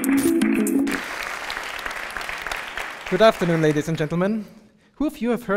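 An audience applauds in a large hall and the applause fades.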